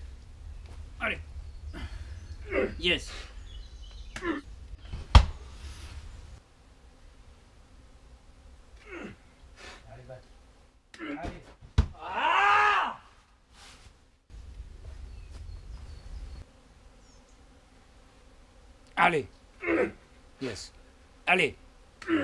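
A young man grunts and breathes hard with effort.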